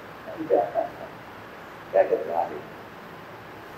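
An elderly man speaks calmly in two short bursts.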